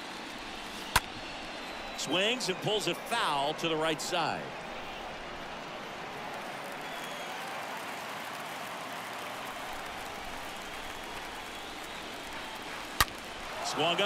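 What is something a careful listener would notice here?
A baseball smacks sharply into a glove.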